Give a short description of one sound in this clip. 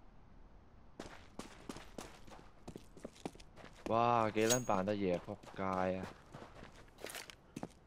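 Footsteps run quickly over hard ground.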